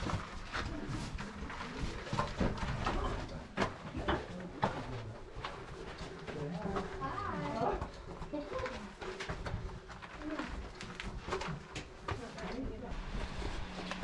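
Hiking boots crunch and scuff on rocky ground.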